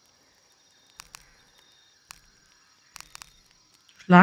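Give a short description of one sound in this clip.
Soft menu clicks tick briefly.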